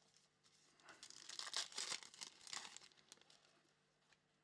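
A foil pack rips open.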